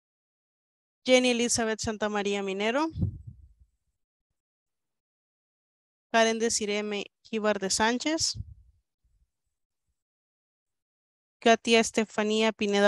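A young woman speaks calmly over an online call, in short bursts with pauses.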